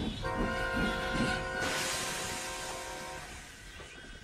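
A steam engine whistle blows loudly and steadily.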